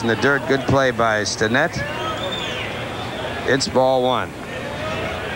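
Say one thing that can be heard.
Fans in the crowd shout and chant loudly.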